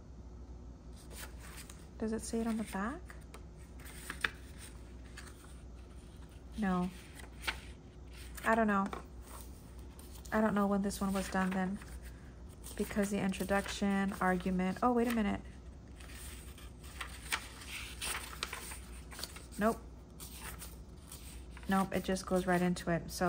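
Paper pages rustle and flip softly close by.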